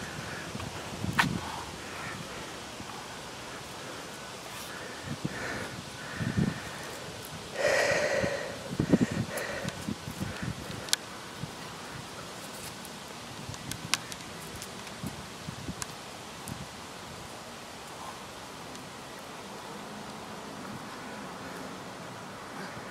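Footsteps thud and scuff on a concrete path outdoors.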